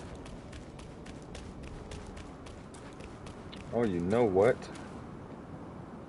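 Footsteps crunch quickly on loose stone.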